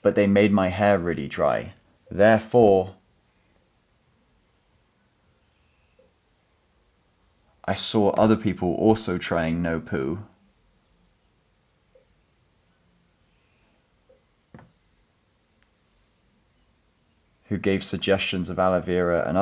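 A young man speaks calmly and clearly, close by, in short bursts with pauses.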